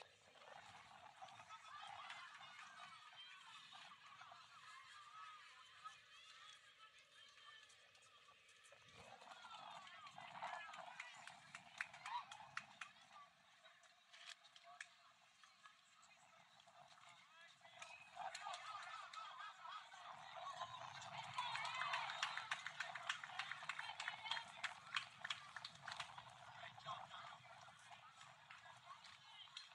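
A crowd of spectators chatters and cheers outdoors at a distance.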